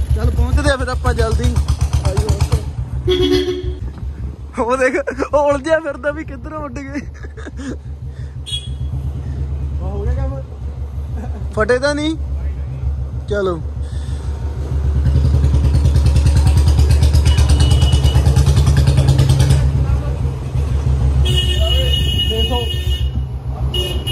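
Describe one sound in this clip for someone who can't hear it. A scooter engine hums steadily nearby.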